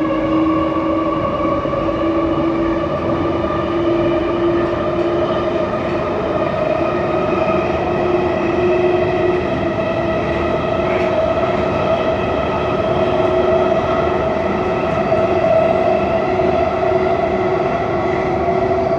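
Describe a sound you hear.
An underground train rumbles and whines loudly along the tracks.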